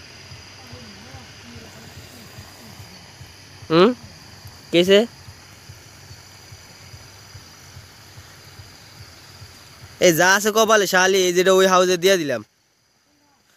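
Air bubbles gurgle and fizz steadily through water.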